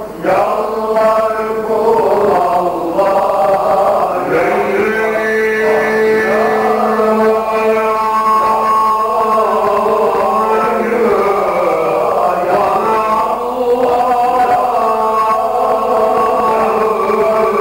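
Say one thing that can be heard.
A man chants a long melodic recitation into a microphone, heard through a loudspeaker in an echoing hall.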